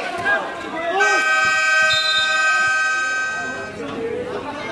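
A referee's whistle blows a long, shrill blast.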